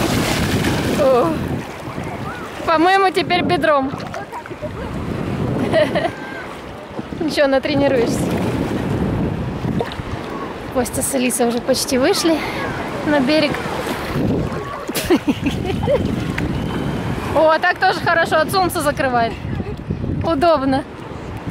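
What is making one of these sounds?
A young girl speaks and laughs with animation, close by.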